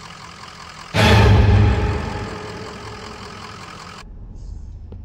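A truck engine roars close by.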